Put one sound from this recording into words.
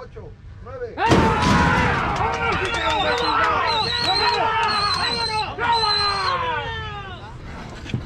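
A crowd of people cheers and shouts loudly outdoors.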